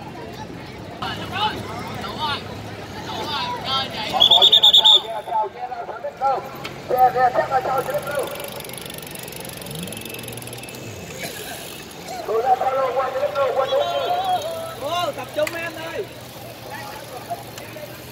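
Men talk and call out nearby, outdoors.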